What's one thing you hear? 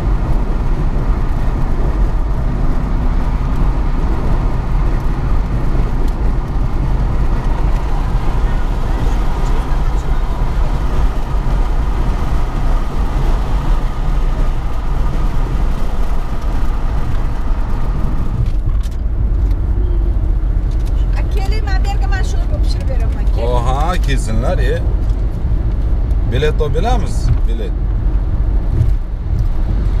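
A car's tyres roar steadily on a highway road.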